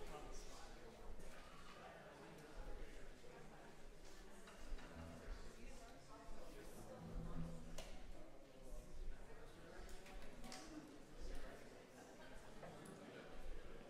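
A crowd of men and women chat at once in a large echoing hall.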